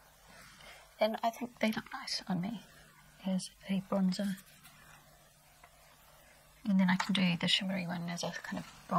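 A middle-aged woman talks calmly and close to a microphone, with pauses.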